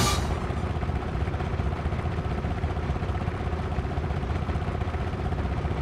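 A racing game's kart engine drones steadily.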